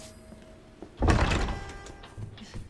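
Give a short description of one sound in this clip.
A heavy door opens with a creak.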